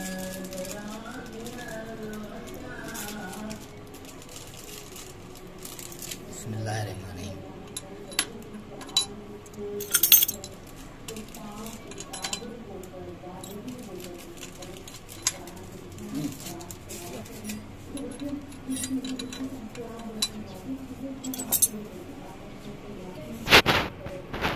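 Metal parts click and knock on a small pump.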